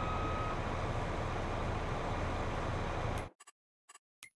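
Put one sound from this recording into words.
A combine harvester engine hums steadily.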